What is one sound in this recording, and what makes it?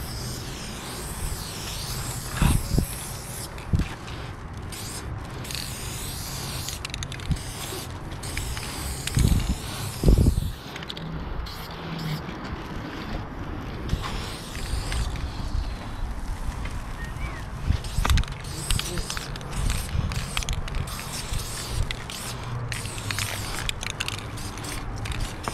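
A spray can hisses in short bursts close by.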